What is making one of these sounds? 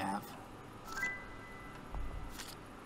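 A short electronic chime rings.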